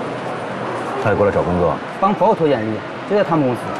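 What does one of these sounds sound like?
A middle-aged man speaks with concern, close by.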